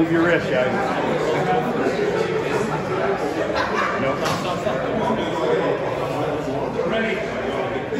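A man speaks firmly up close, giving instructions.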